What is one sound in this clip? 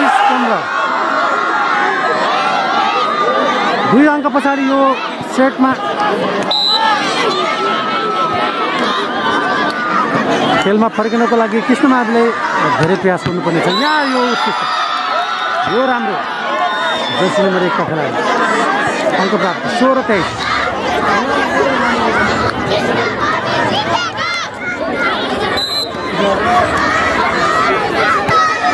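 Young men shout to each other during a game.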